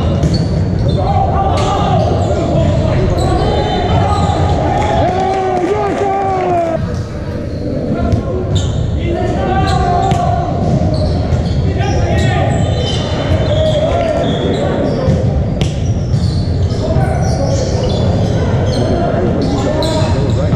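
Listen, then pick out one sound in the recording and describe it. A volleyball thumps when hit.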